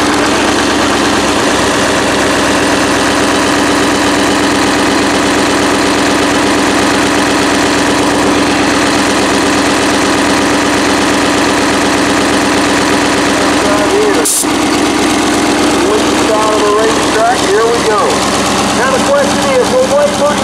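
A race car engine idles with a loud, steady rumble.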